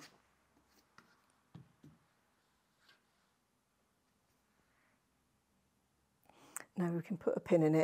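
Fabric rustles softly as it is smoothed by hand.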